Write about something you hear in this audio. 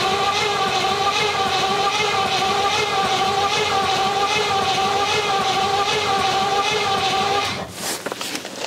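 A car engine idles steadily, then cuts out.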